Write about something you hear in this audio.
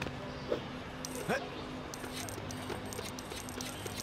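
Small coins clink and chime as they are picked up in quick bursts.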